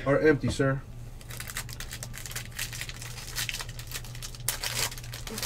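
A plastic foil wrapper crinkles and rustles as it is torn open.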